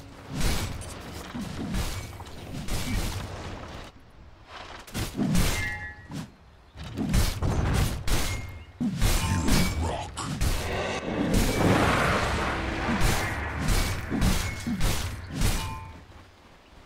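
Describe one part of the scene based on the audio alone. Game sound effects of fighting clash and burst.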